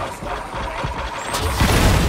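A heavy blade whooshes through the air and strikes.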